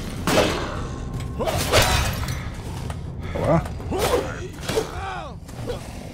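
Swords clash and strike in quick blows.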